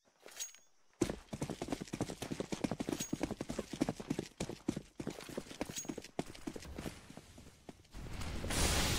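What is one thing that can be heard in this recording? Gunshots crack rapidly.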